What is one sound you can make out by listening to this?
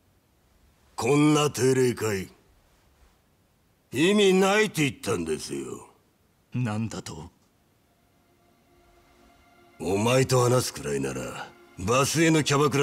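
A man speaks in a low, mocking voice, close by.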